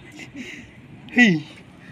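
A young man cries out loudly.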